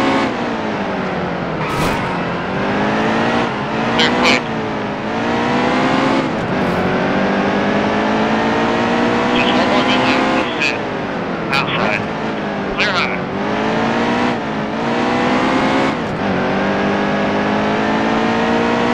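A race car engine roars loudly, rising in pitch as it speeds up and dropping at each gear change.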